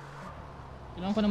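A young man talks close into a microphone.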